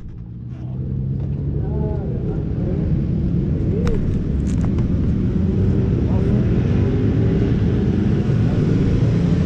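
A motorcycle engine idles close by, rumbling louder over time.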